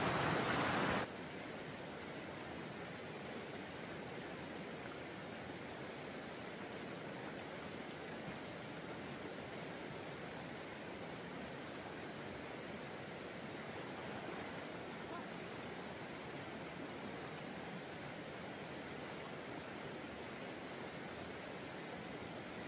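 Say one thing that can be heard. A shallow stream flows steadily over rocks.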